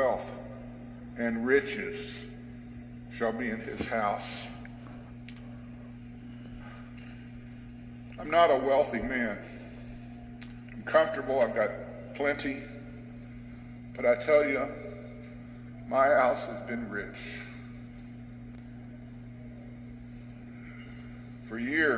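A middle-aged man preaches slowly and deliberately, with long pauses, heard through a loudspeaker in a reverberant hall.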